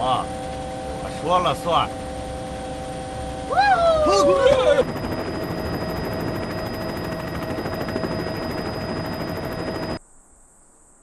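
A helicopter roars loudly as it flies low.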